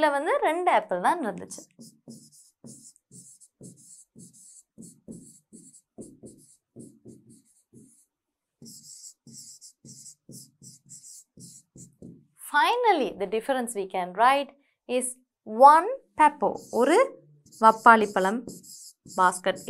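A young woman speaks clearly and with animation, close to a microphone.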